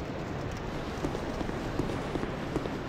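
Armoured footsteps tread on stone.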